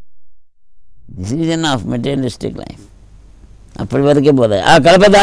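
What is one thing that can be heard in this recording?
An elderly man sings slowly in a deep voice close to a microphone.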